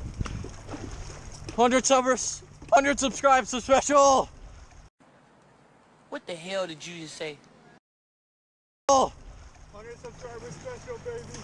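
A wooden canoe paddle dips and splashes in calm water.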